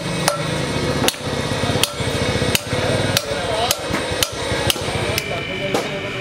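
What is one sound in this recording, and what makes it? A hammer strikes metal with sharp, ringing blows.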